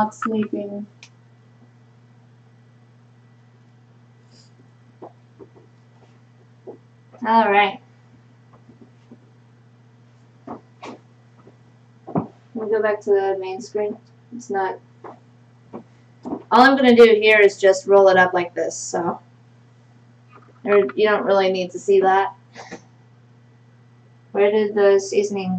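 A young woman talks calmly into a microphone, pausing now and then.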